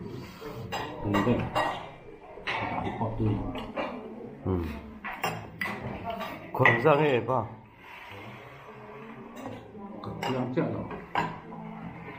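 Spoons and bowls clink on a table.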